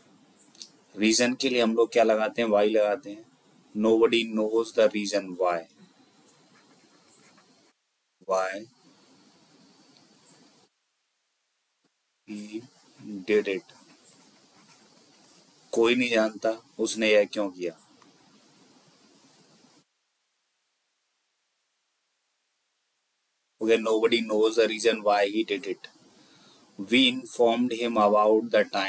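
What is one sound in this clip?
A young man speaks calmly into a close microphone, in bursts with pauses.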